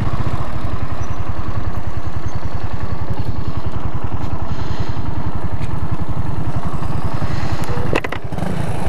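A motorcycle engine idles with a steady, close throb.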